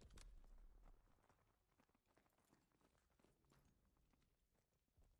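Boots patter quickly on a hard floor.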